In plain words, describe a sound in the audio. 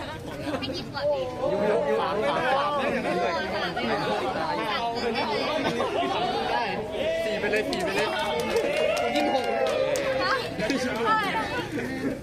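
A crowd of young adults talks and chatters outdoors.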